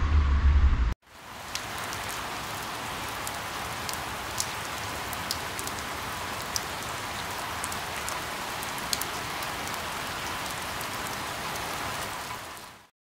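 Steady rain patters on leaves.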